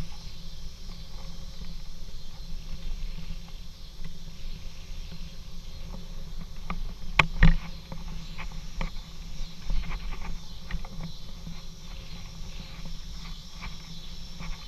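Tyres roll steadily over a paved path.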